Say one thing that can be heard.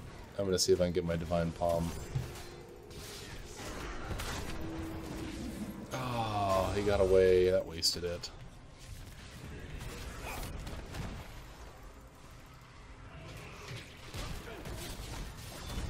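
Game sound effects clash and whoosh.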